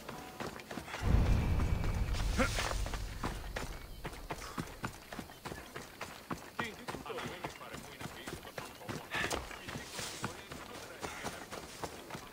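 Footsteps run over dirt and grass.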